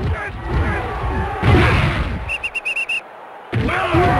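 Football players crash together in a tackle.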